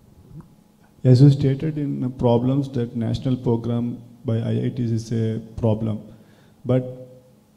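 A woman speaks calmly through a microphone in a large room.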